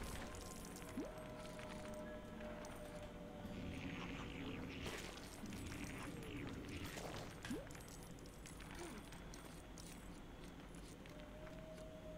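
Small coins clink and chime again and again.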